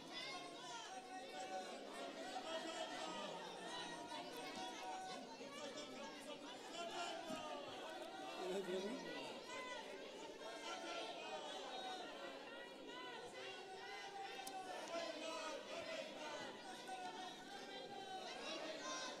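A crowd of men and women shout and chant together in a large echoing hall.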